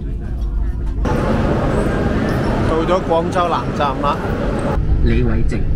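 People chatter in a large echoing hall.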